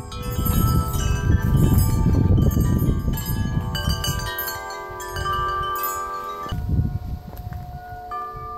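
Wind gusts outdoors.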